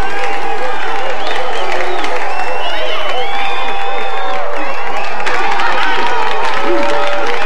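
A crowd claps hands.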